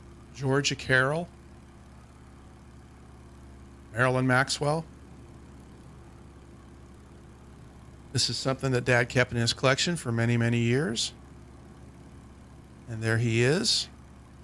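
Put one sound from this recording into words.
A man speaks calmly into a headset microphone in short bursts.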